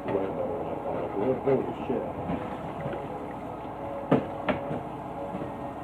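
Dishes clatter and clink as they are handled.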